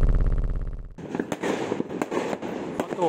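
Fireworks pop and crackle in the distance.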